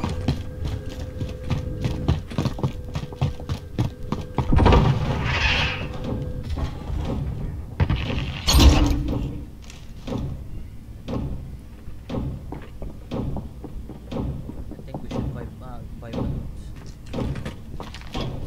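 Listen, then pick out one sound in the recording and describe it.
Footsteps tread on a floor.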